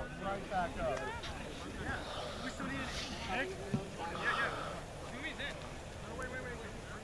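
Several men shout and call out across an open field outdoors.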